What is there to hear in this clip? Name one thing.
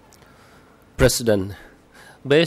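An older man speaks into a microphone in a calm, formal tone.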